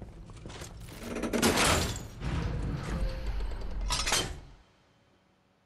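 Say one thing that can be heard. A heavy metal lever is pulled and a mechanism clanks and rumbles.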